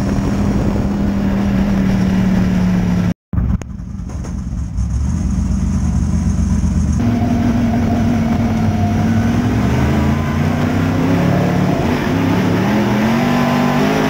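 Tyres rumble and scrabble over a dirt track.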